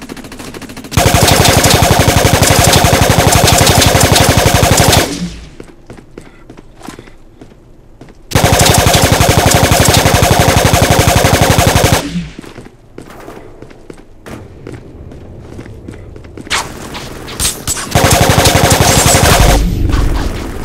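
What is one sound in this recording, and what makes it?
A rapid-fire gun shoots loud, fast bursts.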